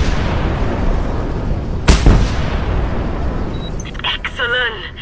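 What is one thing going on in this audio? Explosions rumble loudly.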